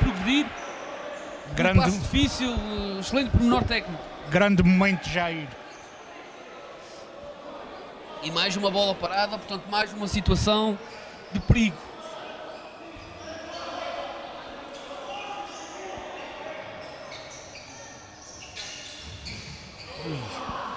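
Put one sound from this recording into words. A ball is kicked across an echoing indoor court.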